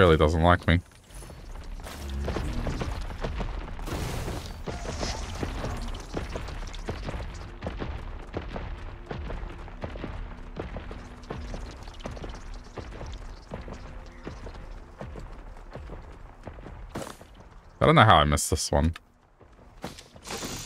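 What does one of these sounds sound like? Footsteps patter quickly over ground.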